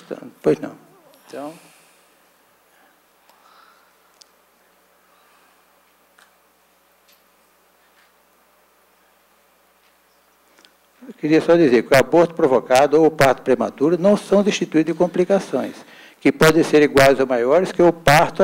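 An elderly man speaks calmly into a microphone, heard through a loudspeaker system.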